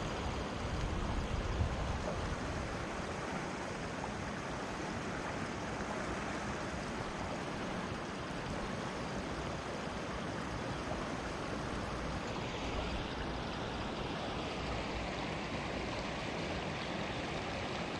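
A river flows and ripples steadily close by.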